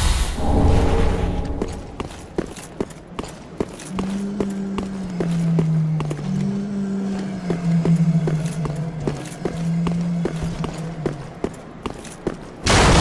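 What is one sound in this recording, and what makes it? Armour clanks with each step.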